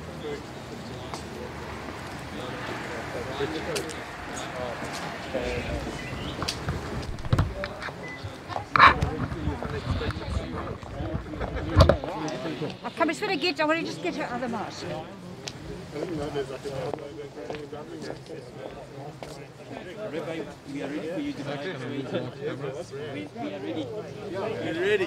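A young woman talks calmly to someone nearby.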